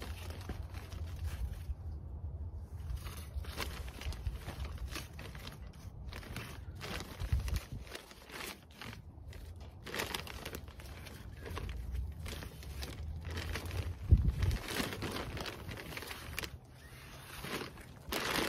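A plastic bag crinkles as gloved hands grab it.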